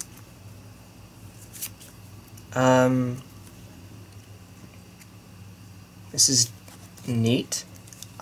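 Playing cards are shuffled and handled softly.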